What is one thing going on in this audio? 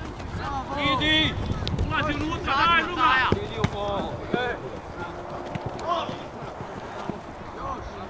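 Male football players shout to each other across an open field.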